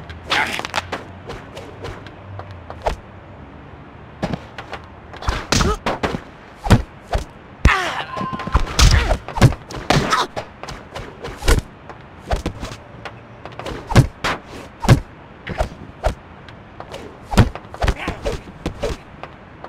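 Punches and kicks land with sharp, repeated thuds.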